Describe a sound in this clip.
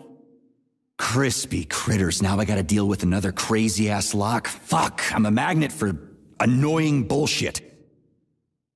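A woman's synthetic voice speaks calmly and close.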